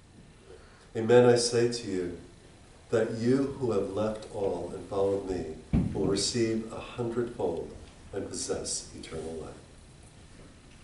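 An elderly man prays aloud in a slow, solemn voice.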